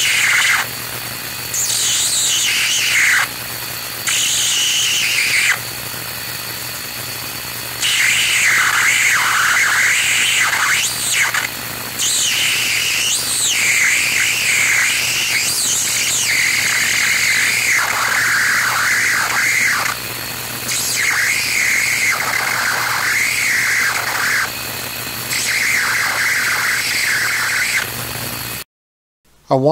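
An electric spark buzzes loudly in bursts, its pitch shifting up and down.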